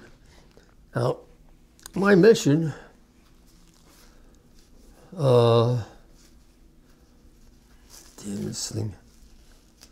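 An elderly man speaks slowly and haltingly, close by, in short bursts.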